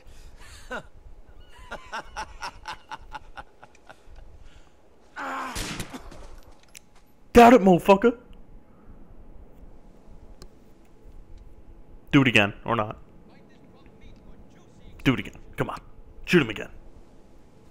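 A man speaks in a hard, mocking voice close by.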